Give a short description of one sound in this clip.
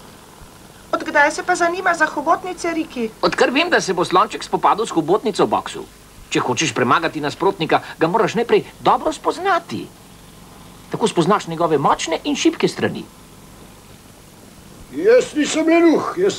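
A cartoon character's voice talks with animation, in short bursts.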